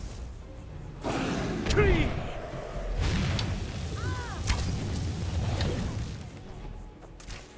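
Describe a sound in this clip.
A dragon roars loudly.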